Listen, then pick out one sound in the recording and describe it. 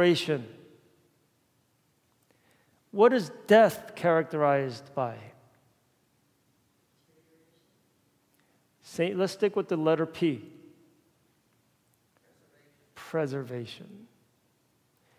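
A man speaks calmly through a microphone in a large echoing hall, with pauses.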